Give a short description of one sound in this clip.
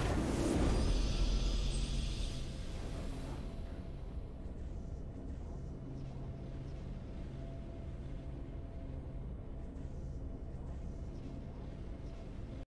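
A triumphant fanfare swells and slowly fades.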